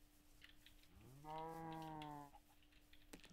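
A cow moos.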